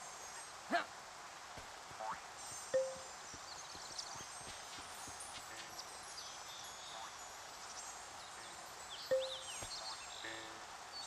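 Short game chimes ring out now and then.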